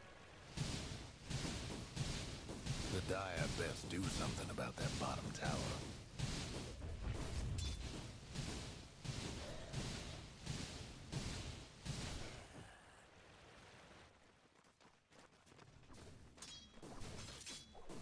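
Swords clash and magic bursts crackle in a fantasy battle.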